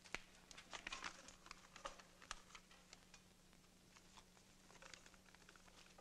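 Dishes clink on a table.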